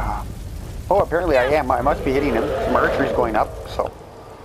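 A dragon roars.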